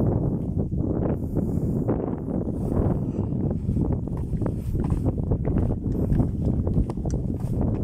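Wind blows hard outdoors, rumbling against the microphone.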